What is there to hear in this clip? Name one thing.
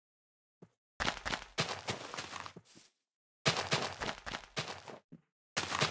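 Dirt blocks crunch as they are dug out in a block-building game.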